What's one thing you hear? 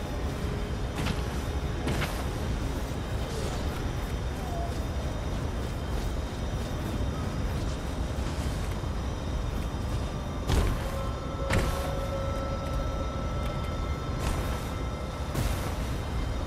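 A sword swishes sharply through the air.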